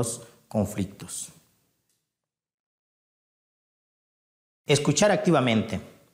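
A man speaks calmly into a clip-on microphone, in short phrases with a long pause.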